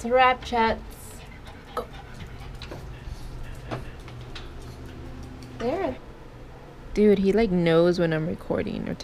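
A small dog whines in high, wavering cries close by.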